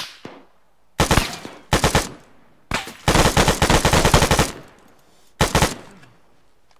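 Loud gunshots ring out in quick bursts outdoors.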